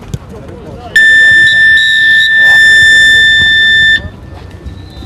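A referee blows a long, shrill whistle.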